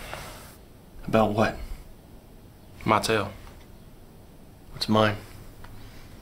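A second man answers quietly, close by.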